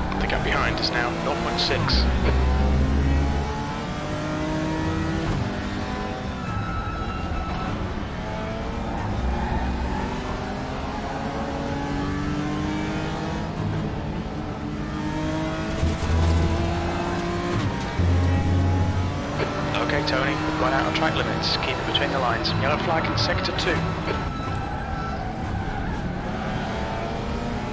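A race car engine roars and revs up and down through the gears.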